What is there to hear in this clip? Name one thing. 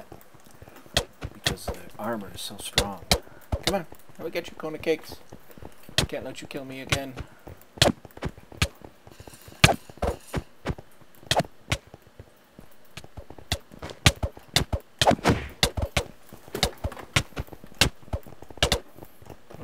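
Sword blows land on players with quick, sharp hits.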